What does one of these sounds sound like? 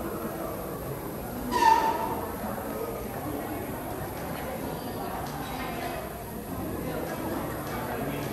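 A young woman speaks calmly through a loudspeaker in a large echoing hall.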